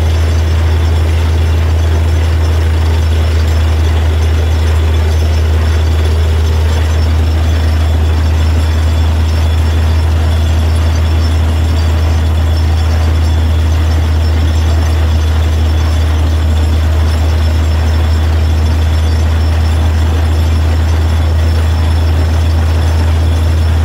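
A drill grinds and churns into the ground.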